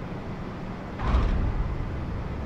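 Airliner tyres thump onto a runway on touchdown.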